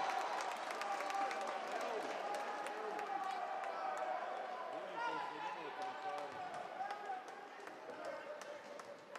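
A crowd cheers and chatters in a large echoing hall.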